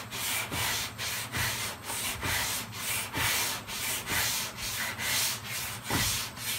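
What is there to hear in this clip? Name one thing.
Sandpaper scrapes back and forth in quick, steady strokes.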